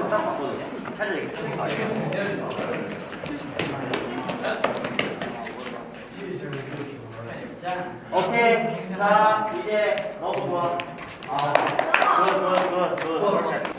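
Sneakers squeak and thud on a hard floor as people dance.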